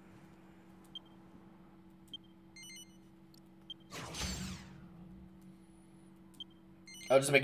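A game menu gives short soft beeps.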